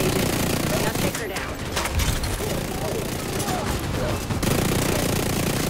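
Explosions burst with heavy booms.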